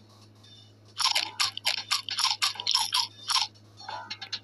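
A cartoon mouse munches noisily on food.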